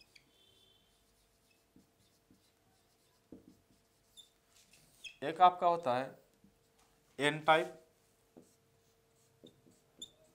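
A marker squeaks faintly on a whiteboard.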